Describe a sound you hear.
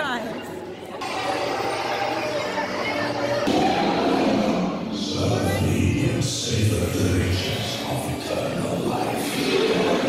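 Loud, rumbling music and effects play through loudspeakers.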